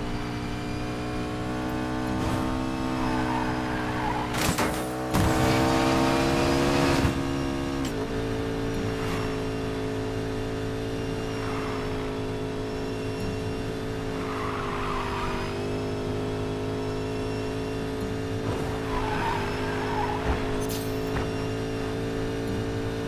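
Tyres hiss on asphalt at speed.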